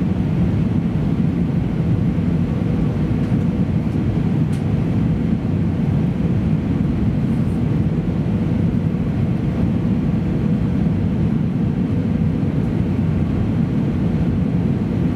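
A washing machine drum spins with a steady low rumble.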